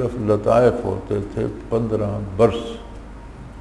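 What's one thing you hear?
An elderly man speaks slowly and firmly into a microphone.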